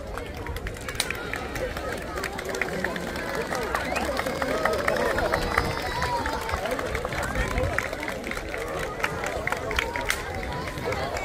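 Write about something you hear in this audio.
A large crowd of men, women and children cheers.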